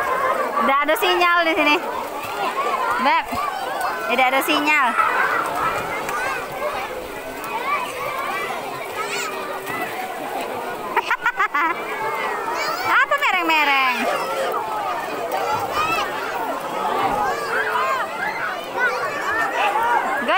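Children shout and chatter all around, outdoors.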